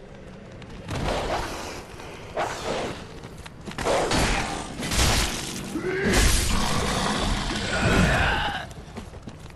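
Metal blades clash and strike in a fight.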